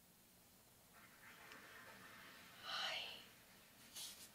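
A young woman speaks softly close to a microphone.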